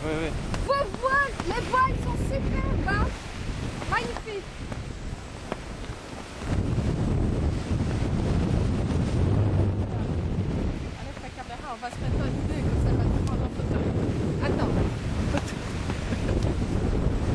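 Wind rushes and buffets loudly outdoors.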